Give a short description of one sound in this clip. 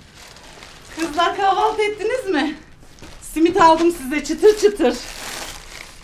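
An older woman speaks and laughs warmly.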